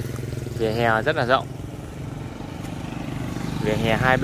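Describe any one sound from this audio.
A motorbike engine drones as it rides past close by.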